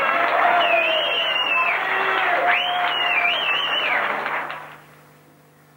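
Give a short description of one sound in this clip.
A rock band plays loudly on stage, with electric guitars and drums.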